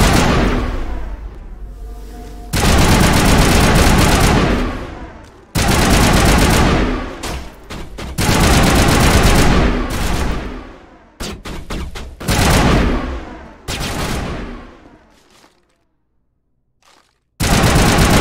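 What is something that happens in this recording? Rifles fire loud bursts of shots that ring out with echoes.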